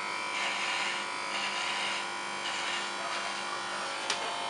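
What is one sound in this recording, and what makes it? A hair clipper rasps through short hair.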